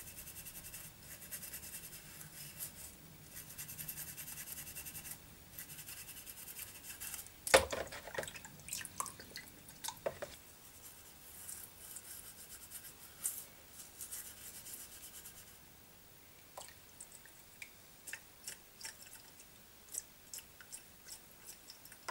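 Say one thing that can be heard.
A toothbrush scrubs a metal lid over a plastic bowl.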